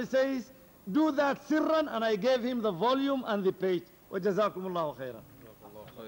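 A man speaks with animation into a microphone, heard through a loudspeaker.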